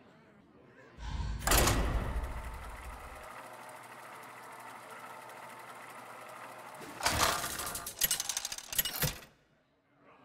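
A game's matchmaking wheel whirs and rattles as it spins.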